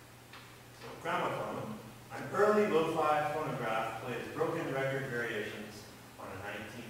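A young man talks casually in a large echoing hall.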